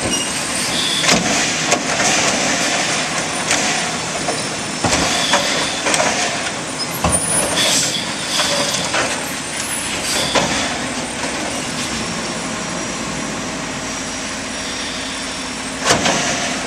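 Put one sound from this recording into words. A garbage truck's mechanical arm lifts a bin with hydraulic whirring.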